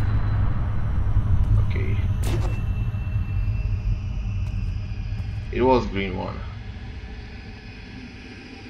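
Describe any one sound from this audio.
A spacecraft engine rumbles low and steadily, then fades.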